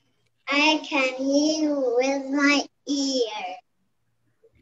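A young girl sings through an online call.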